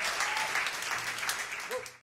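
Acoustic guitar strings ring softly.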